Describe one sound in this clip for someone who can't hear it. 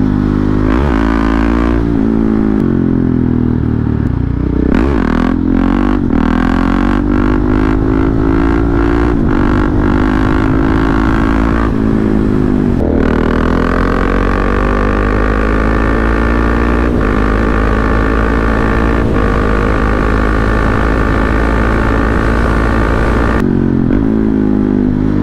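A motorcycle engine roars close by, revving up and dropping as gears shift.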